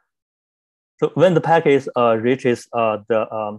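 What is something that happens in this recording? A young man speaks calmly through a microphone on an online call.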